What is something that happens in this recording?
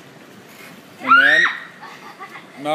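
A young girl squeals excitedly.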